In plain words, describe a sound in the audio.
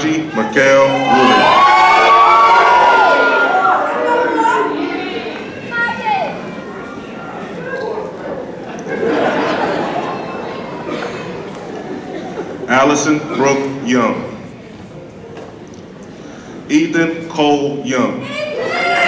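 A man reads out names over a loudspeaker in a large echoing hall.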